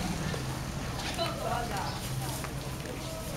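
A woman talks briefly nearby.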